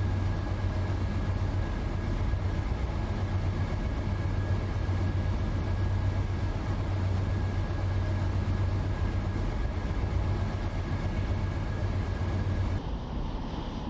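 A locomotive engine rumbles steadily from inside the cab.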